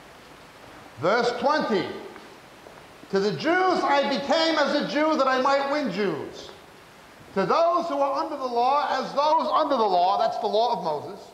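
A man speaks with animation, heard through a microphone.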